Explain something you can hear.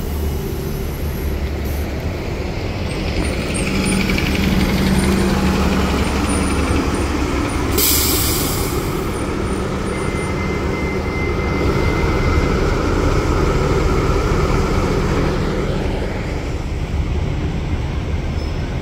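City traffic hums steadily outdoors.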